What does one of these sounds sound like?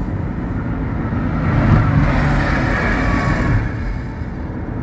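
An army vehicle passes close by with a rushing whoosh.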